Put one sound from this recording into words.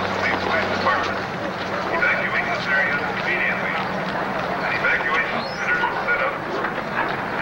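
A crowd of people shout and scream in panic nearby.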